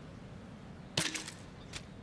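An arrow snaps away from a bow with a sharp twang.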